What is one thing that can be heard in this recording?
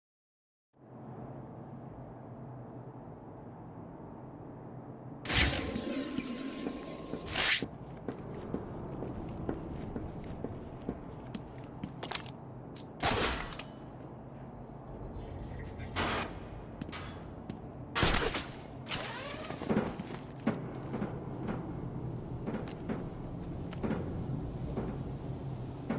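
Heavy footsteps thud on hard floors and metal stairs.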